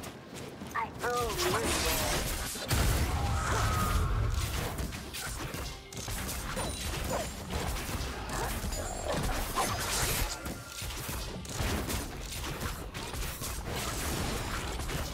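Video game spell effects crackle and whoosh during a fight.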